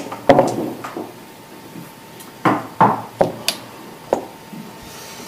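Backgammon checkers click and knock against a wooden board.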